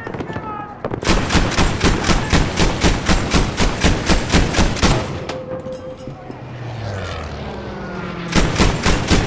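A heavy anti-aircraft gun fires rapid, booming bursts of shots.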